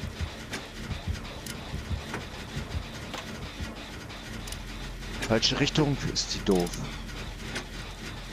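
Metal parts of a machine rattle and clank as it is worked on.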